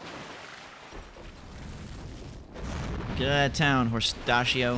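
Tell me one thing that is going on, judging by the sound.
A fireball whooshes and bursts.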